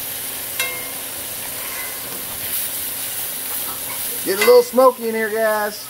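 A metal spatula scrapes against the pan.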